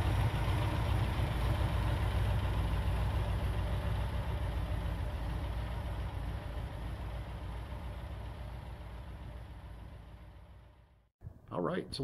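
The four-cylinder engine of a classic sports car runs and slowly fades.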